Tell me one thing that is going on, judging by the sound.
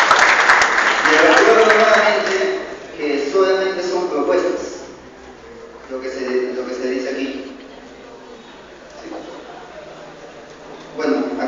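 A man speaks through a loudspeaker in an echoing hall.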